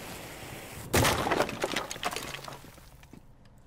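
Glass shatters and smashes.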